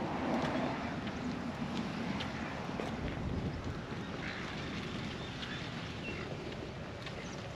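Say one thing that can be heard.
Footsteps tap steadily on a concrete path.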